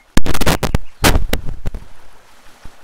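A fish thrashes and splashes at the water's surface.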